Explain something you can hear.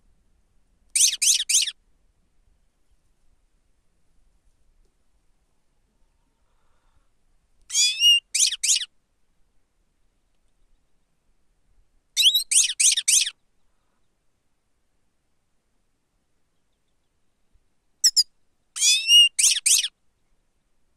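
A small bird sings short, bright chirping phrases close by, pausing between them.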